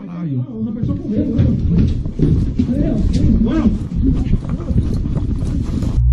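Footsteps crunch on a rough floor.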